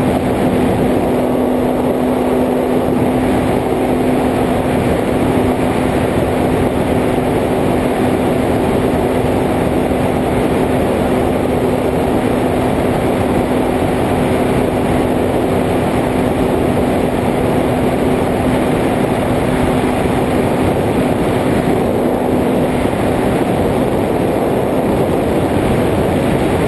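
Wind rushes past the drone.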